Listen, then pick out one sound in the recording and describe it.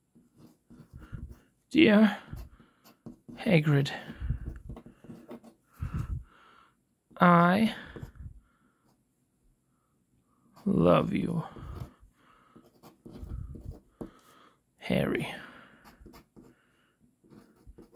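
A metal pen nib scratches across paper.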